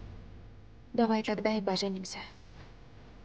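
A young woman speaks quietly and gently, close by.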